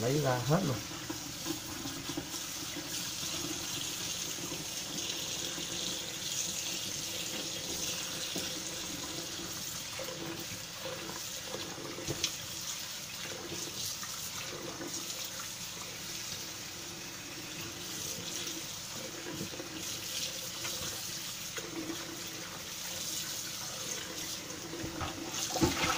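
Hands rub and splash through wet food in a metal pot.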